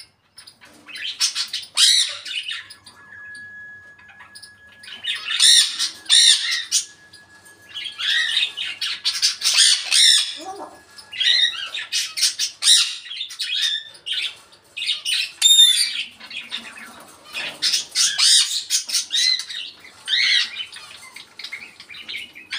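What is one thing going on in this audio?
A parrot squawks, whistles and chatters in bursts close by.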